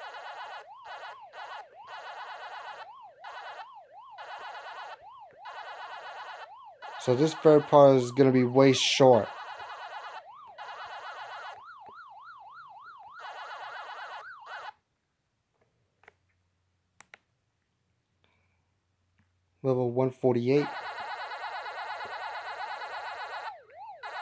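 A rising and falling electronic siren whines steadily.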